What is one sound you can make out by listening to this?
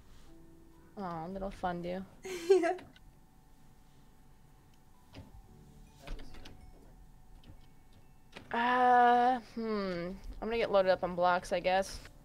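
A young woman sings and vocalizes playfully into a close microphone, in short bursts.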